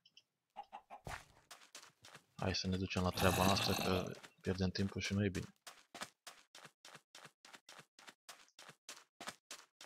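Footsteps crunch steadily on sand.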